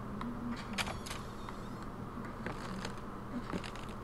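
A door creaks open.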